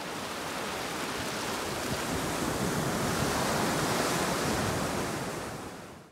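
Waves break and wash up onto the shore with a steady rushing roar.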